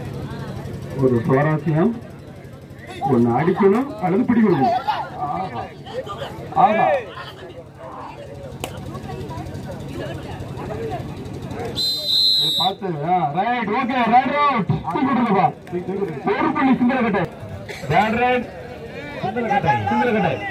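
A young man chants quickly and loudly, repeating one word.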